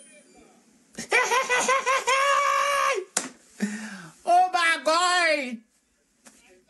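A young man laughs loudly, close by.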